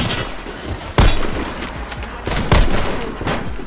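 A sniper rifle fires with a sharp crack.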